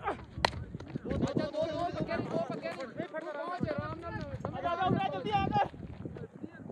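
Young men shout excitedly outdoors.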